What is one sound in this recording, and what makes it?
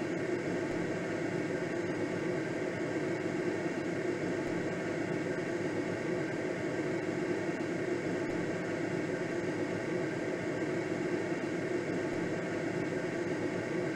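Wind rushes steadily past a gliding aircraft.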